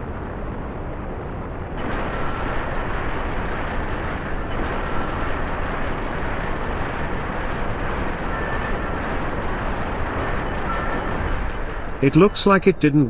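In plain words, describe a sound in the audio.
An aircraft engine roars steadily up close.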